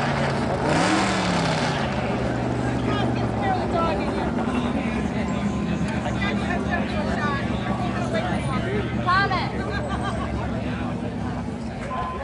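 A race car engine idles with a loud, steady rumble and briefly revs up.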